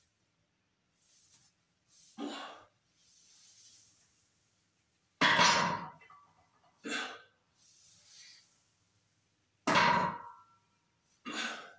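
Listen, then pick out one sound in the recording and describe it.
A man breathes heavily and puffs with effort.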